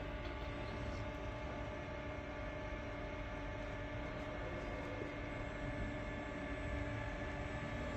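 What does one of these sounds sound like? A robot arm whirs softly as it moves.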